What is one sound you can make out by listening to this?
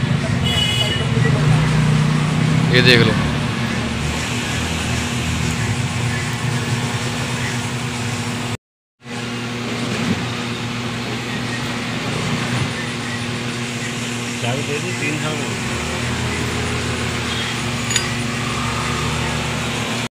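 A screwdriver clicks and scrapes against metal engine parts.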